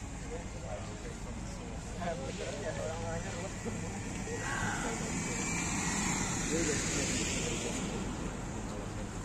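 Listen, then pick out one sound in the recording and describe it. A pickup truck drives slowly past.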